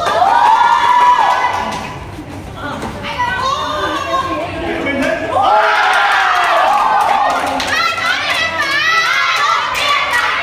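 Young fighters shout sharply as they spar.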